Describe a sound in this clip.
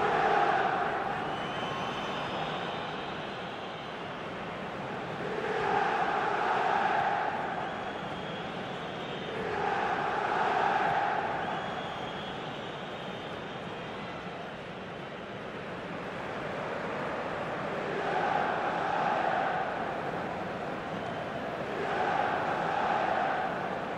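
A large stadium crowd chants loudly in swelling waves.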